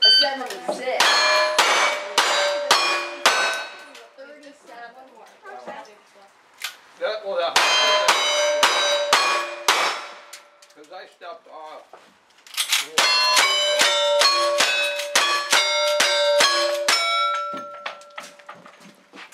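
Steel targets ring out after each hit.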